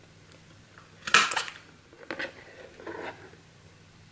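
A paper punch clicks sharply as it punches through paper.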